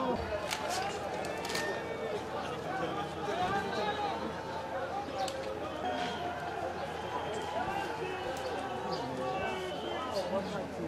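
A crowd of men talks and calls out loudly all around.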